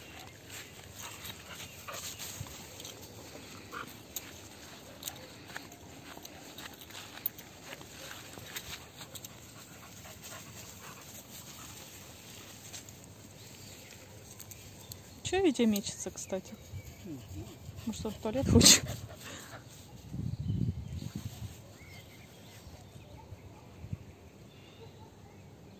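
Dogs rustle through tall grass as they trot about.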